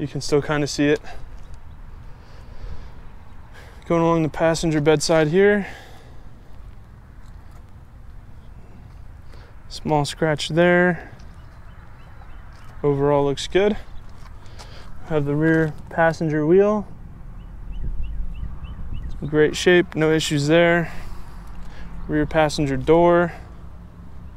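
A man speaks calmly in short phrases close to the microphone.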